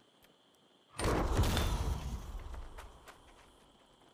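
A chime sounds as a game menu confirms a choice.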